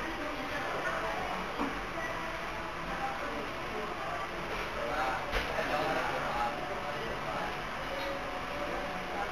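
A crowd of men and women chatter in the background.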